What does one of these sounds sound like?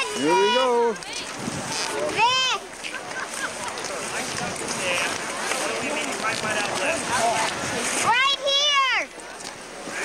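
A young child cries out in high, drawn-out wails.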